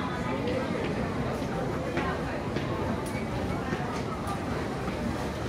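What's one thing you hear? Several people chatter nearby.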